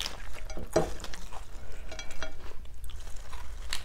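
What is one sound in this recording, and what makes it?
Fresh lettuce leaves rustle and crinkle close up.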